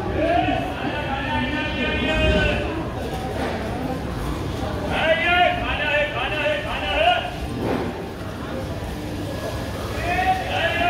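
A crowd of men and women talk in the distance.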